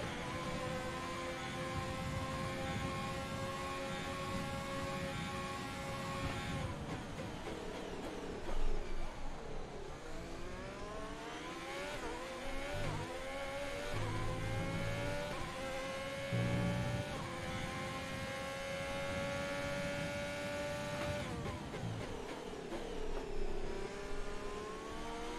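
A racing car engine screams at high revs, rising and dropping as gears shift.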